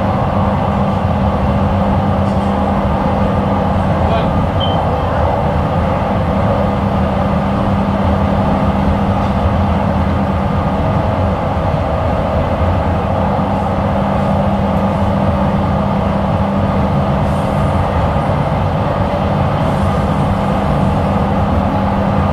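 A light rail train hums and rumbles along an elevated track, heard from inside.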